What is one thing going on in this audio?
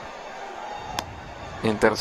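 A baseball smacks into a leather glove.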